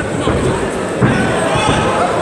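A kick lands on a fighter with a dull thud.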